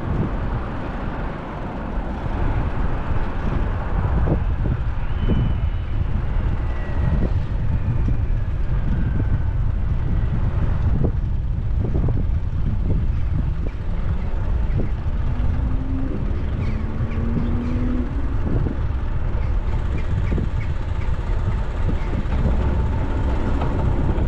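Bicycle tyres roll and hum on pavement.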